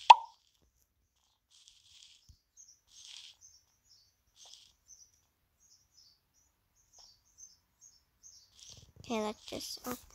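Soft footsteps patter lightly on the ground.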